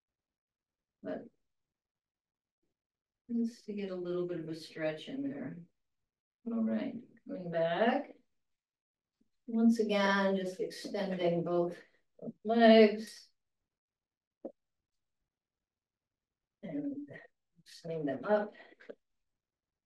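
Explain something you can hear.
An elderly woman speaks calmly through a microphone, as if instructing.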